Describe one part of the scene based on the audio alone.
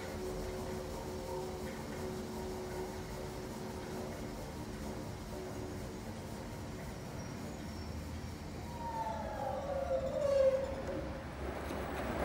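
A front-loading washing machine hums as its drum spins.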